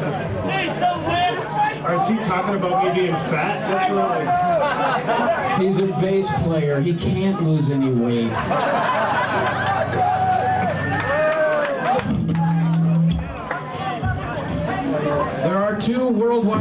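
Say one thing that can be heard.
A man sings into a microphone, heard through loudspeakers in a large echoing room.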